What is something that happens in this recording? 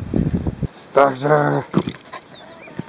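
A Boston terrier barks excitedly outdoors.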